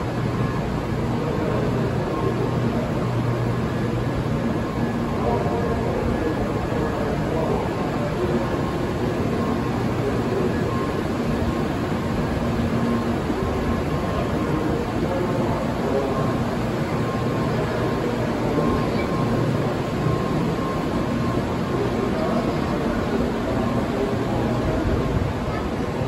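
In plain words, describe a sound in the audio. A train glides slowly along a platform with a steady rumble.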